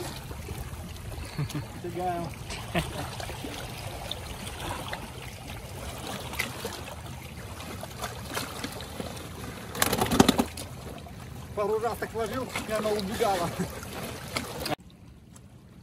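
Wind blows across the water.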